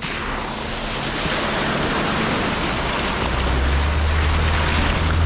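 Water splashes as tyres drive through a muddy puddle.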